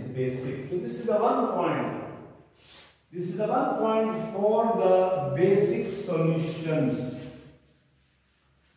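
An elderly man speaks calmly and clearly nearby.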